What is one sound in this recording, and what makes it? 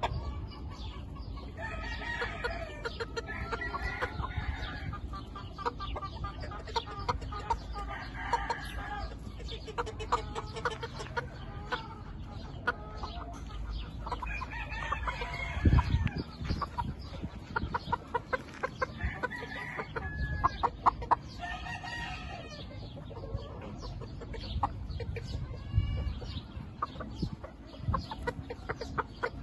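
A rooster flaps its wings in short bursts.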